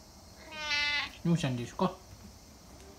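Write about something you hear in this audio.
A cat meows loudly a few times, close by.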